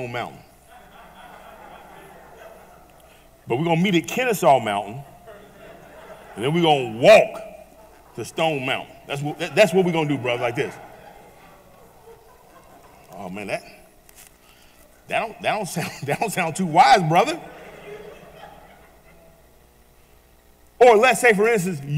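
A man preaches with animation into a microphone, in bursts with pauses, in a reverberant hall.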